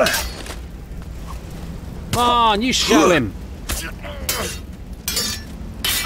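Steel swords clash with a metallic ring.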